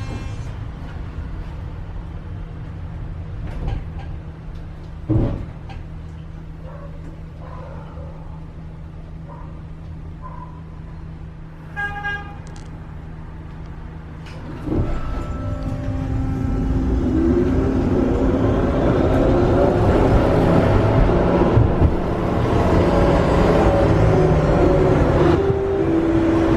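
A tram hums and rumbles steadily along its tracks.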